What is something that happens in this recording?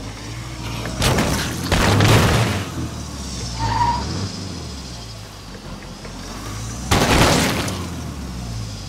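A vehicle crashes and thuds into bodies.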